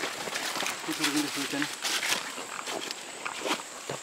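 Footsteps crunch on dry leaves and soil.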